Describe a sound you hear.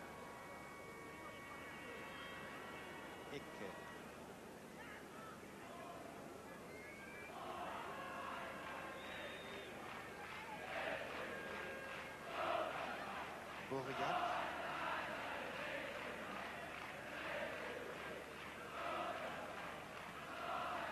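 A large stadium crowd roars and chants, swelling louder partway through.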